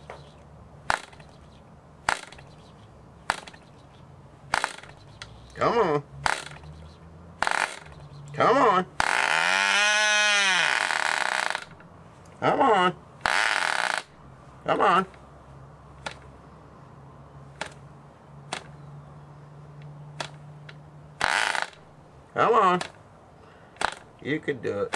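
A small switch clicks sharply, again and again.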